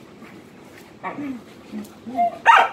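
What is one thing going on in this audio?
Dogs growl and yelp as they play-fight up close.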